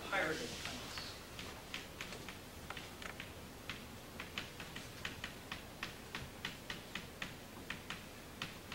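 Chalk taps and scrapes on a chalkboard in quick strokes.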